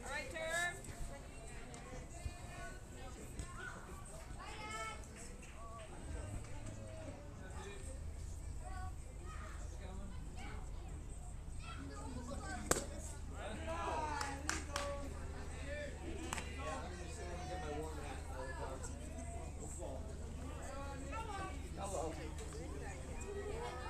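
Young players call out and chatter across an open field.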